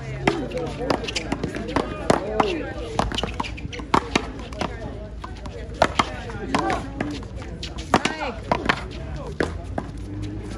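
A ball smacks sharply off paddles and a wall with an echo.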